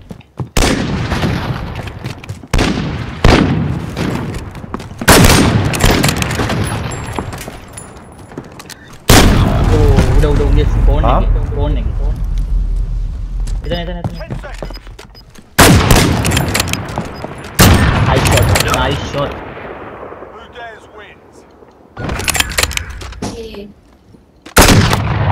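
Loud rifle shots crack and boom, each followed by a long echoing rumble.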